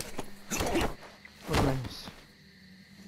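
Leafy bushes rustle loudly as they are pushed aside.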